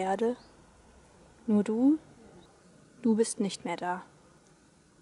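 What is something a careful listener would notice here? A young woman speaks calmly and close by, in short bursts.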